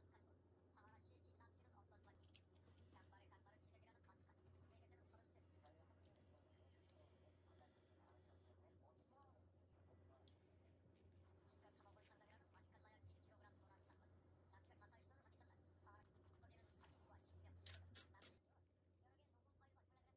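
Chopsticks and a spoon clink softly against a ceramic bowl.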